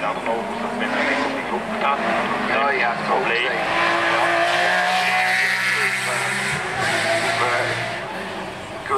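A racing car engine roars and revs as the car speeds up a winding hill and passes close by.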